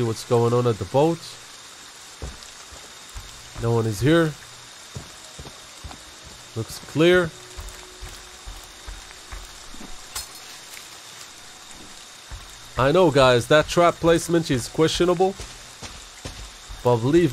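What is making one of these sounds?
Heavy footsteps crunch slowly through undergrowth.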